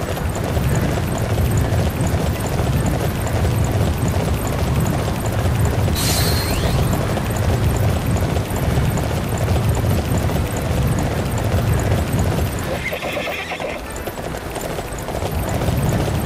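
A horse gallops with steady thudding hoofbeats.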